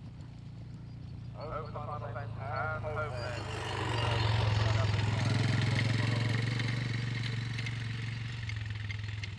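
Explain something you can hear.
A horse gallops and its hooves thud on grass.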